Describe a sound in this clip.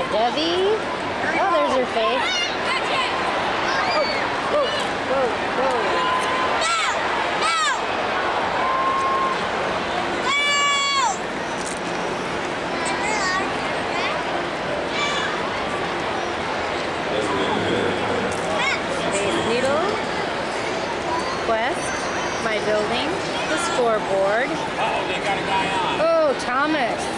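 A large crowd murmurs and chatters steadily all around, outdoors.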